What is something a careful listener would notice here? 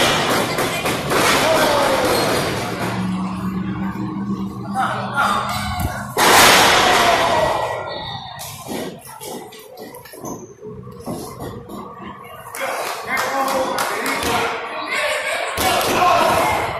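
Bodies slam onto a wrestling ring mat with loud thuds.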